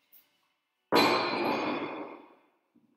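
Dumbbells thud down onto the floor.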